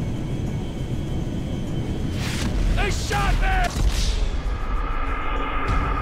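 A man exclaims excitedly into a close microphone.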